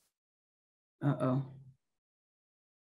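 A middle-aged woman speaks briefly and calmly, close to a microphone.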